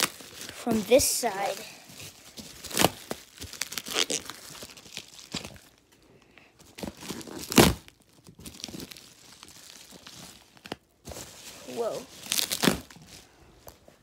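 A phone rubs and knocks against clothing as it is moved about.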